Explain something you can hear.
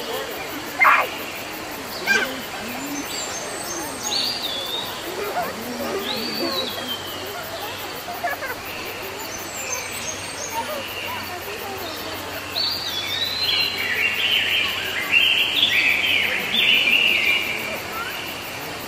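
A peacock rattles its spread tail feathers.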